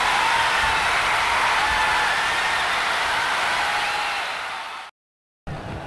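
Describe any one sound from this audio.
A stadium crowd roars and cheers loudly, then fades.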